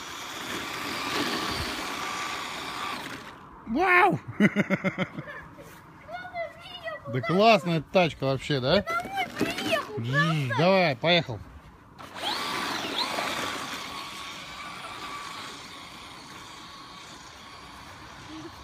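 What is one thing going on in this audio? A toy car's electric motor whirs as it races over snow.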